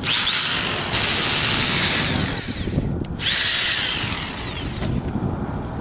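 A power drill whirs, speeding up and slowing down.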